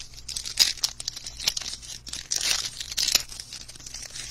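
A foil wrapper crinkles and tears as hands rip it open.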